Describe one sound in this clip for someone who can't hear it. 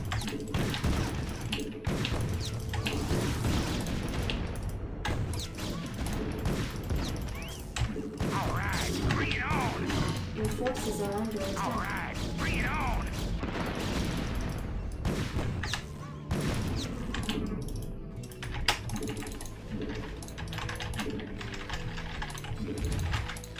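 Game battle effects crackle and boom.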